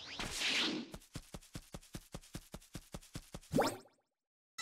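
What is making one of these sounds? Quick footsteps patter on grass.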